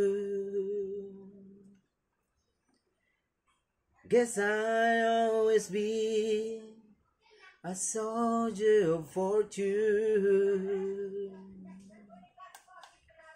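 A man sings into a microphone close up.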